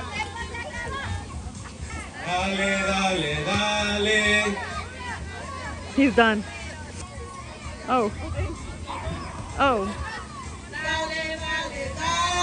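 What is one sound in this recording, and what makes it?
A crowd of adults and children chatters and cheers outdoors.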